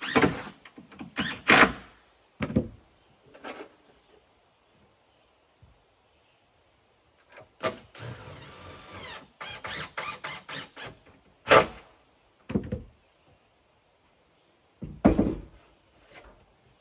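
Tools knock and clatter on a wooden deck.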